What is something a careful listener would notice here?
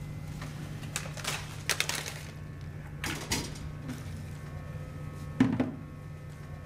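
Rubbish tumbles out of a bin onto a hard floor.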